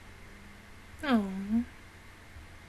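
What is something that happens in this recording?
A young woman makes a short, wavering sound with her voice close to a microphone.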